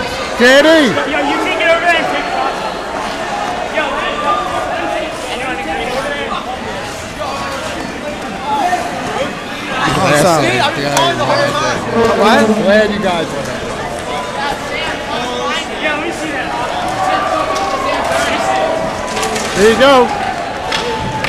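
A crowd of young men shout and cheer close by, in a large echoing rink.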